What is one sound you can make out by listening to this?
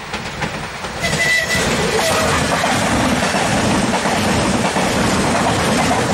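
A train rattles and roars past close by.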